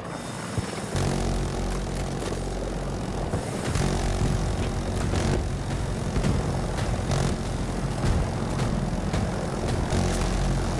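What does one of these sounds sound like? A rotary machine gun fires in rapid bursts.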